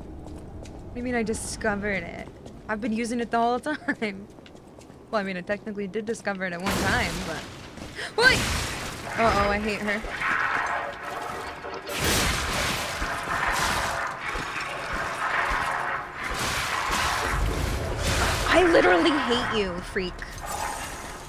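A young woman talks casually into a microphone.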